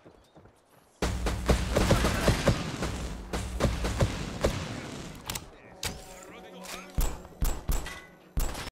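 A heavy energy gun fires in rapid, crackling blasts.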